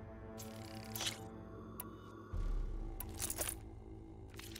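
Soft menu selection clicks sound.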